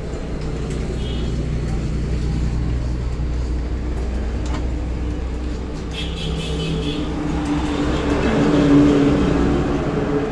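Metal parts clink and scrape as a motorcycle brake is worked on by hand.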